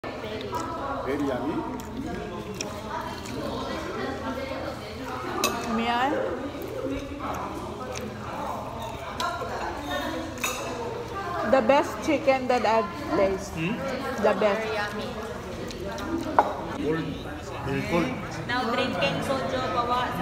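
Several people chat in the background of a busy room.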